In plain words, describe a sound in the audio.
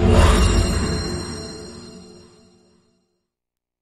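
A deep, booming chord rings out and slowly fades away.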